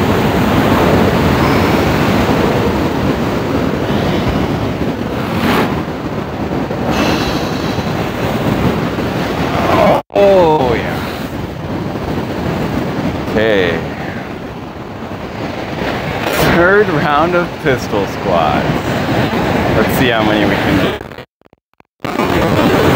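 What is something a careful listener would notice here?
Waves crash and wash over rocks nearby.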